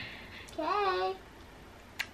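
A baby coos and babbles close by.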